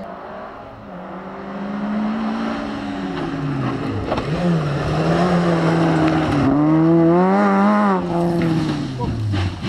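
A second rally car engine screams up close and revs through a tight bend.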